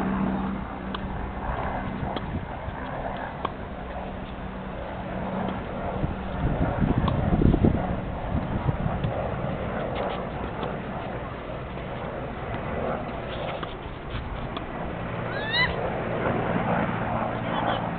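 A tennis ball is struck with a racket far off.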